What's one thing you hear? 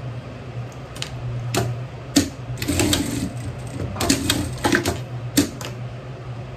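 A sewing machine stitches in short, quick bursts.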